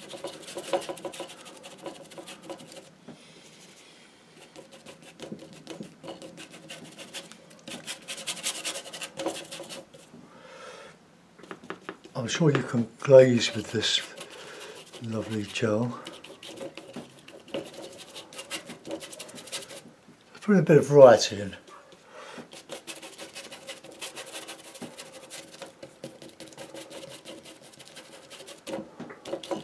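A brush scrubs and dabs against canvas close by.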